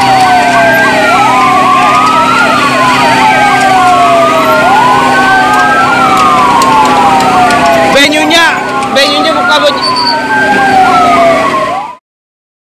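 Several fire engine sirens wail loudly and steadily up and down.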